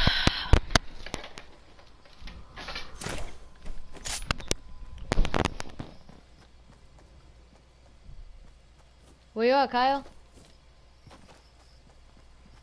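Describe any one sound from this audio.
Footsteps land and run on grass.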